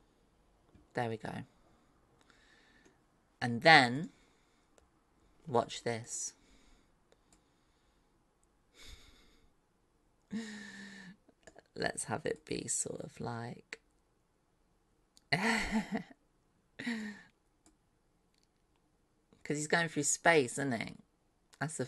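A young woman talks casually into a close microphone, in short bursts with pauses.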